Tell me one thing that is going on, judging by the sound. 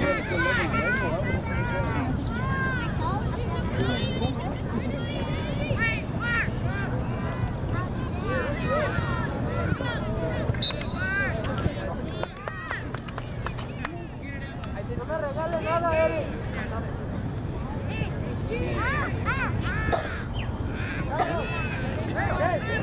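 Young women shout across an open field in the distance.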